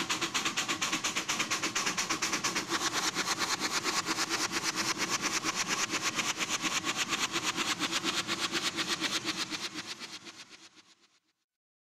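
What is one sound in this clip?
A steam locomotive chuffs rapidly and steadily, then fades away.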